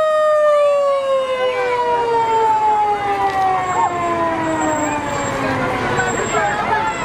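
A fire truck siren wails close by and slowly falls in pitch as it passes.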